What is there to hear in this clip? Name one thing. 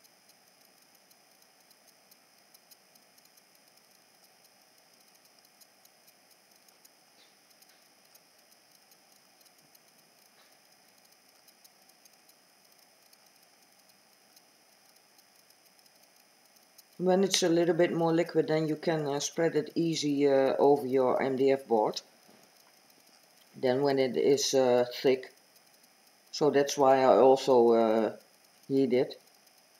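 A heat gun blows with a steady whooshing hum.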